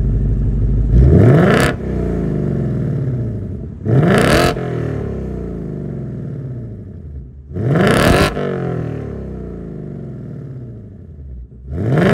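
A car engine revs sharply and roars through the exhaust several times.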